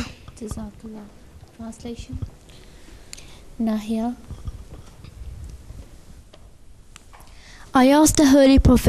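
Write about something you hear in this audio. A young boy speaks softly into a microphone.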